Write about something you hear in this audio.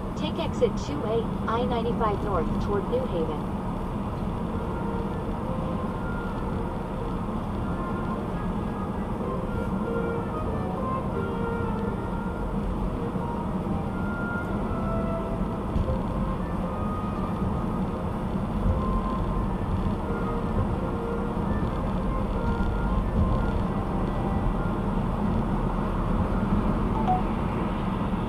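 A car's engine hums steadily as tyres roll over the road.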